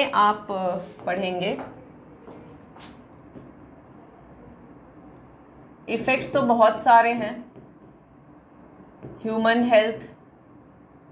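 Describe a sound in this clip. A young woman speaks calmly in short phrases, close to a microphone.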